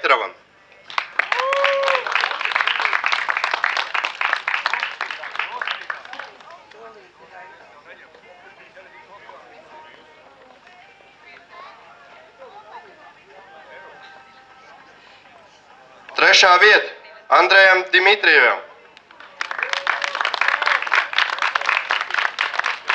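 A small crowd claps and applauds outdoors.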